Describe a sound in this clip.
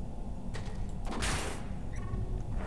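A video game's energy gun fires a blast.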